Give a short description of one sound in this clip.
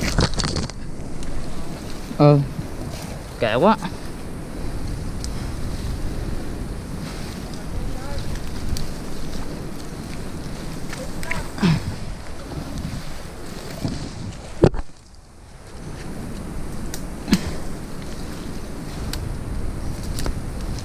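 Leaves and branches rustle close by.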